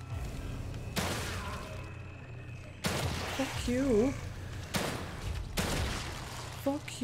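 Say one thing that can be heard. Gunshots ring out sharply several times.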